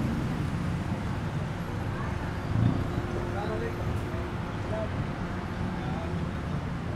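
A motor rickshaw engine rumbles steadily.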